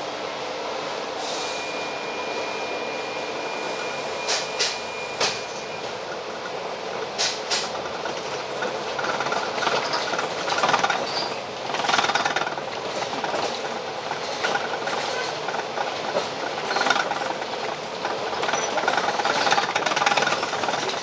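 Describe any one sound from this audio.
A tram rumbles and rattles along its tracks.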